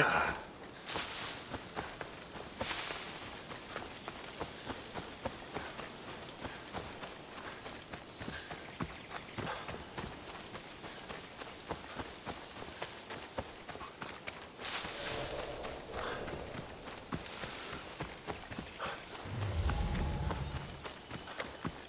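Footsteps run quickly over dry leaves and grass.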